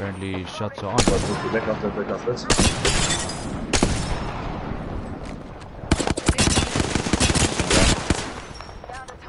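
Rapid gunshots crack in bursts.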